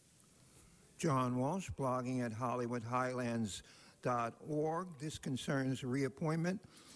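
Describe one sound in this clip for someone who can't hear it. A man speaks clearly through a microphone.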